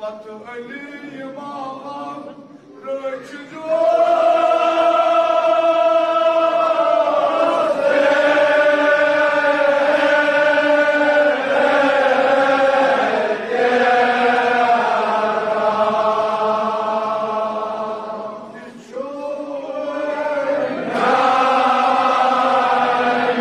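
A man chants loudly in a long, drawn-out wail through a loudspeaker.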